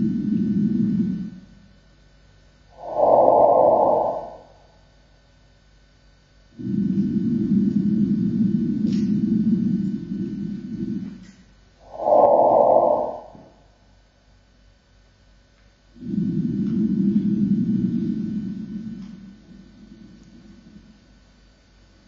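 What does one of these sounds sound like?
A musical instrument plays long, swelling low notes in a hall.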